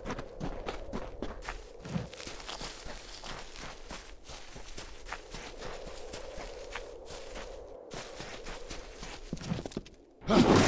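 Footsteps crunch quickly over dry ground.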